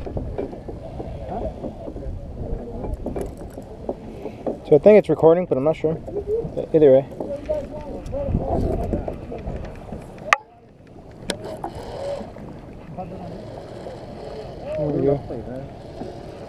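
Wind blows steadily and rumbles against the microphone outdoors on open water.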